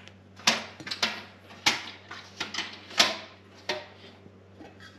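Fingers tap on a metal lid, ringing briefly with each tap.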